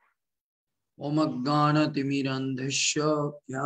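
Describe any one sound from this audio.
A man speaks calmly into a microphone over an online call.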